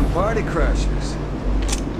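A young woman speaks calmly and wryly.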